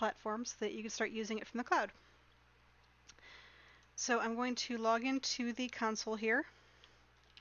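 A young woman speaks calmly and close into a headset microphone.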